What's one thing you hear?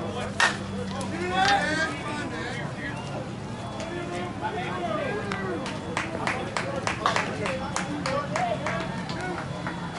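Men shout and cheer outdoors.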